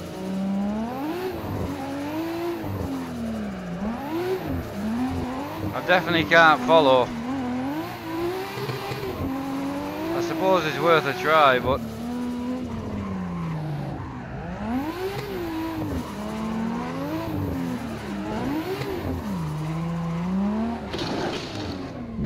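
A car engine revs up and down continuously.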